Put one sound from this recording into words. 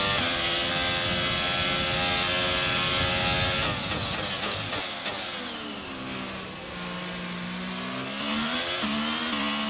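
A racing car engine roars at high speed, then drops in pitch as the car brakes and downshifts before revving up again.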